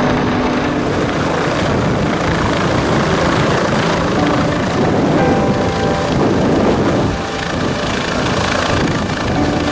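Helicopter rotors thump loudly close overhead.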